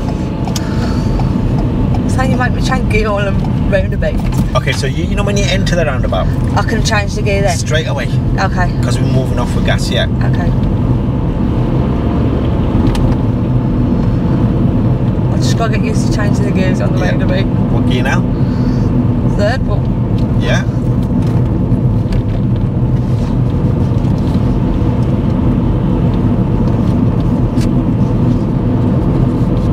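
A car engine and tyres hum steadily from inside a moving car.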